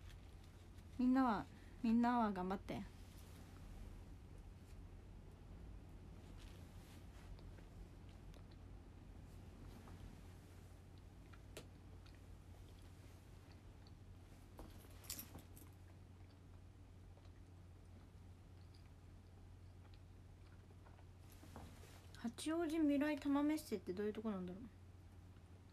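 A young woman speaks up close in short, lively bursts.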